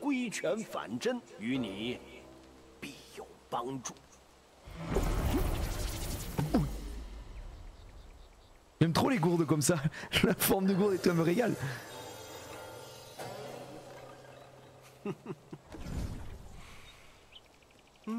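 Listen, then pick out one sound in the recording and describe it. A young man speaks into a close microphone.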